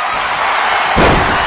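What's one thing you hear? A loud thud sounds as a wrestler is grabbed.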